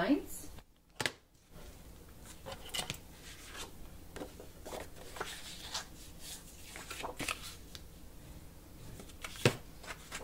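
Cardboard taps against a tabletop.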